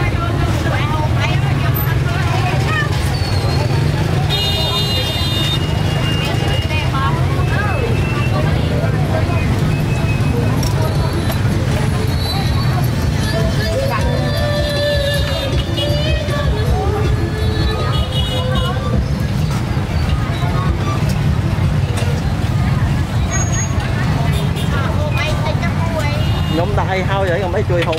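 People chatter steadily all around.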